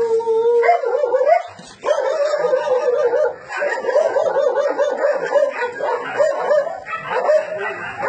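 Dogs whine and yelp excitedly close by.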